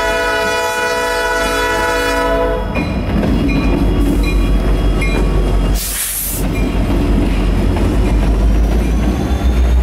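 Diesel locomotive engines rumble deeply close by.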